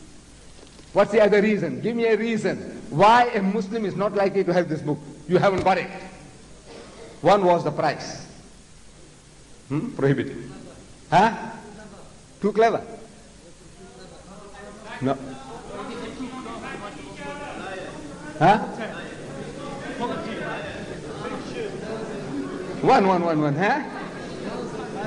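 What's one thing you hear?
An elderly man speaks forcefully into a microphone in a large echoing hall, in bursts with pauses.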